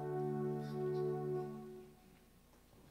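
A group of singers holds a last chord through loudspeakers and stops.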